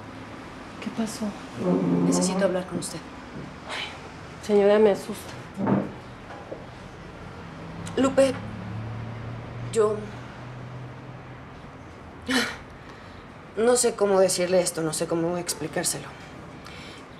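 A second woman speaks calmly and firmly nearby.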